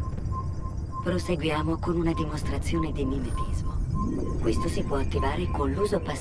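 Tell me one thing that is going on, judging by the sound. Men murmur and talk nearby.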